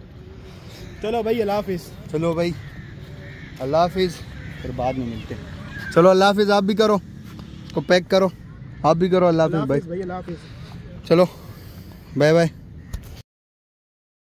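A young man talks with animation close to a phone microphone, outdoors.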